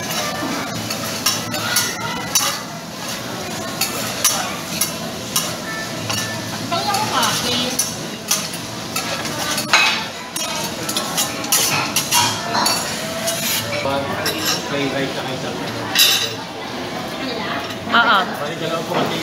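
Metal spatulas scrape and clatter rapidly on a hot griddle.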